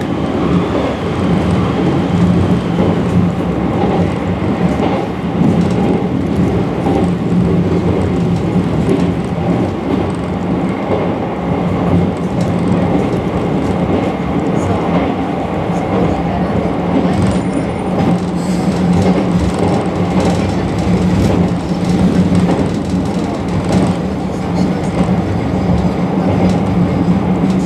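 A train rumbles steadily along the tracks with a low hum.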